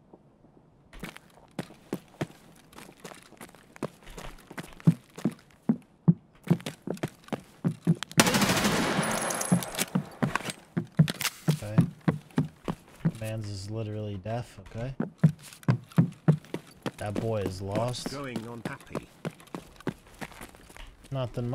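Footsteps thud quickly on stairs.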